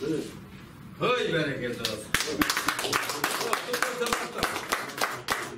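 A small crowd applauds.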